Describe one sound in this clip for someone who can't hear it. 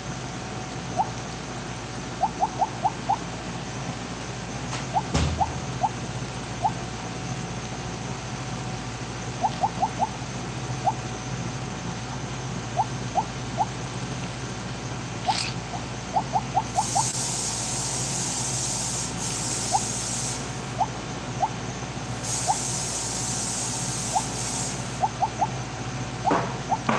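Short high electronic blips sound again and again as a game snake eats.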